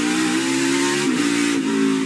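A race car engine briefly drops in pitch as the gears shift.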